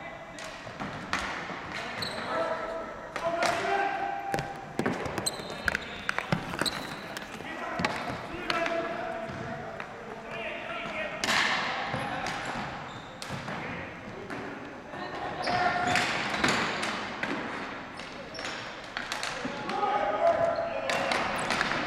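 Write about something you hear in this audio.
Spectators shout and cheer from the sidelines.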